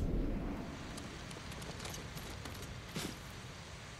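Footsteps crunch lightly on rock.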